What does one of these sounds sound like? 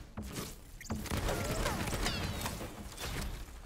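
A gun fires rapid shots with loud explosive bursts.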